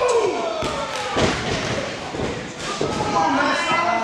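A wrestler slams onto a wrestling ring mat with a heavy thud.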